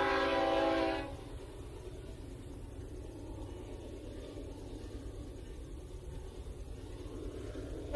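A train rumbles steadily as it approaches along the tracks.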